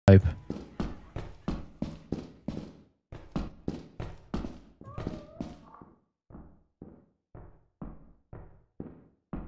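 Footsteps thud steadily on a hard floor, fading quieter toward the end.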